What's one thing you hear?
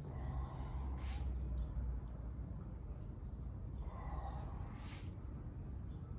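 A man breathes out sharply as he bends forward.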